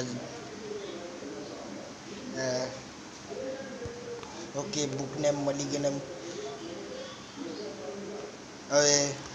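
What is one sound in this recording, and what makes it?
A young man talks close to the microphone.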